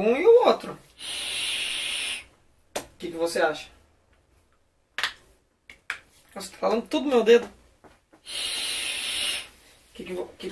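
A vape device hisses steadily as a young woman draws on it.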